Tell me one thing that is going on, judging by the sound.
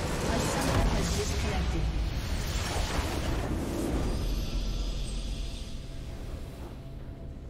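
A huge structure explodes with a deep, rumbling boom.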